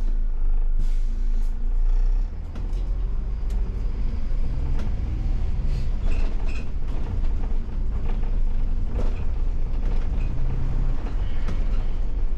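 The bus body rattles and clunks over the road.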